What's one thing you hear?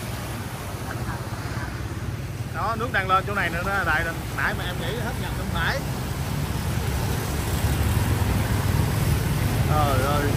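Motor scooter engines hum as they ride through deep water.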